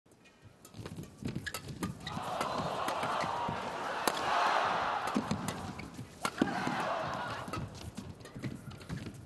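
Rackets smack a shuttlecock back and forth in quick rallies.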